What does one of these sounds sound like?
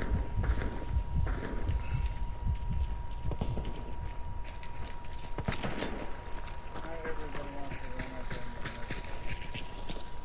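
Footsteps crunch on dry ground and twigs.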